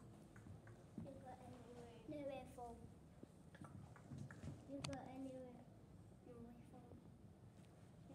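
Young children speak their lines in a play, in a room with some echo.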